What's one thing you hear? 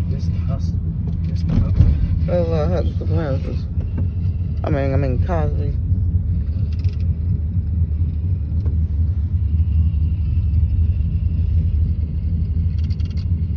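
A car engine hums steadily with a low rumble as the car drives along.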